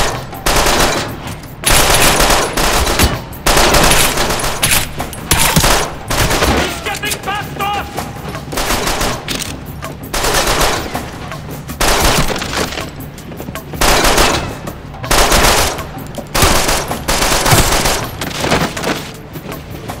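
Gunshots fire in loud, rapid bursts.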